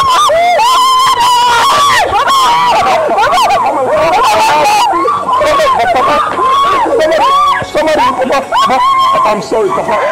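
A woman wails and screams loudly in distress, outdoors.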